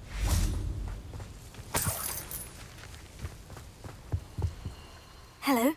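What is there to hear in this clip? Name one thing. Footsteps thud on grassy ground.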